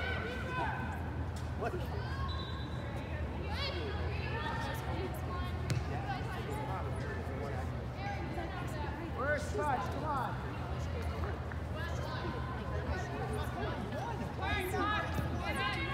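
Young women call out and shout to each other across a large echoing hall.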